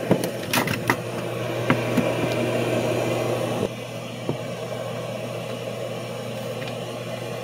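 A furnace motor hums steadily, then drops to a quieter hum.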